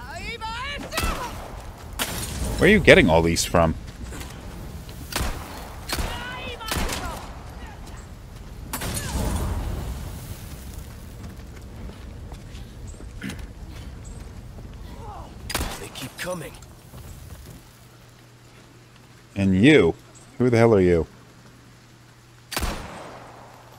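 Pistol shots ring out one at a time.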